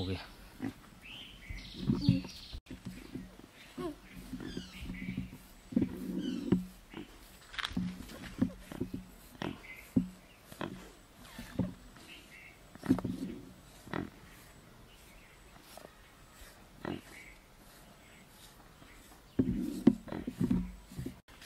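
A pig grunts softly.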